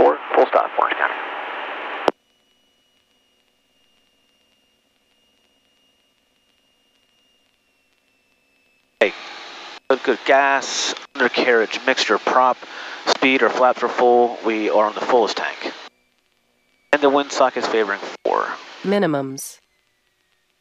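A man speaks calmly over a headset radio.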